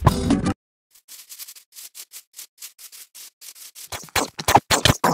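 Footsteps crunch steadily through grass.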